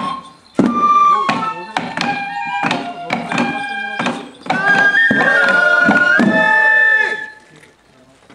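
Small hand drums are beaten in a quick rhythm.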